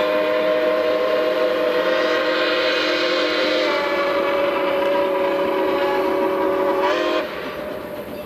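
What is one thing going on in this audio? A steam locomotive's whistle blows loudly and steadily, then cuts off.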